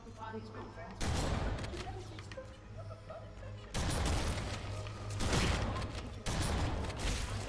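Gunfire rattles in loud rapid bursts.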